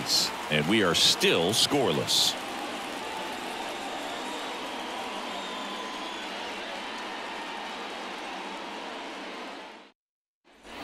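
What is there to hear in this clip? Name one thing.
A large crowd cheers in a stadium.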